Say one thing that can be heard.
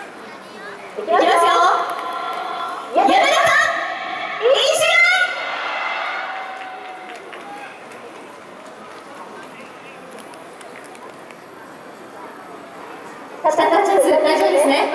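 A crowd cheers and shouts loudly in bursts.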